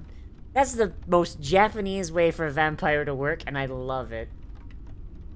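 A young woman speaks animatedly into a close microphone.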